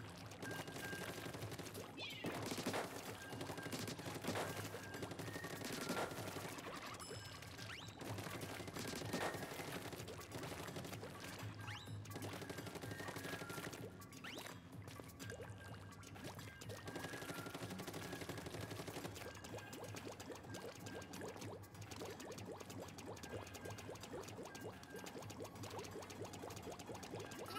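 Upbeat electronic game music plays throughout.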